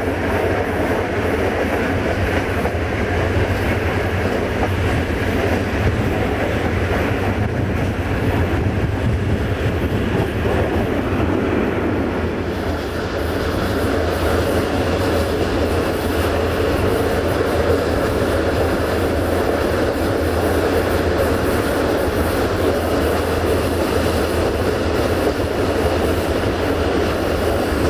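Wind rushes loudly past an open train window.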